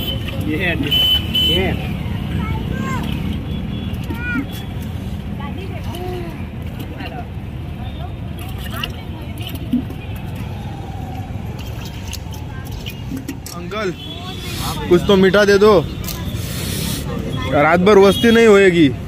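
A crowd chatters in a busy street outdoors.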